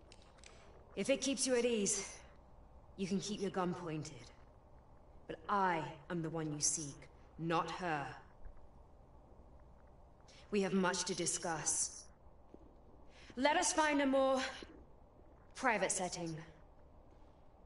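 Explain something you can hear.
A young woman speaks calmly and tensely.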